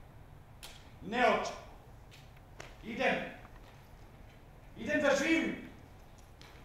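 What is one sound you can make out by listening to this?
A younger man answers loudly and emotionally, heard from a distance in a large hall.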